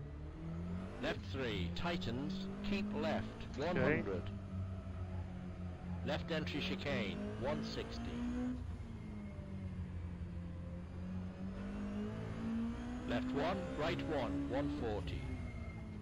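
Tyres squeal through corners in short bursts.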